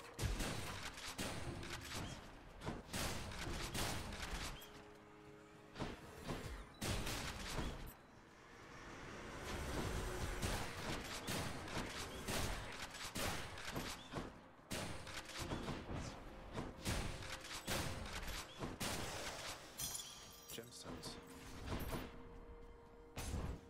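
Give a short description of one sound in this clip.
Sharp game hits and magic blasts crack repeatedly.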